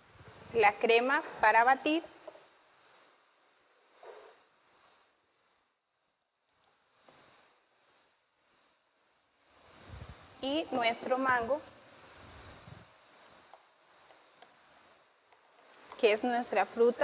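A woman talks calmly and clearly, close to a microphone.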